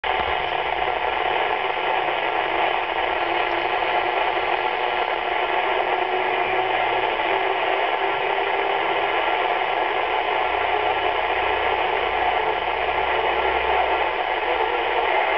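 Static hisses and crackles steadily from a radio loudspeaker.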